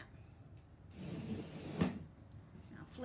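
A wooden board slides and scrapes across a table.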